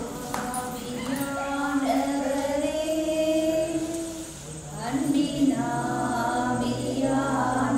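A woman speaks calmly into a microphone over a loudspeaker.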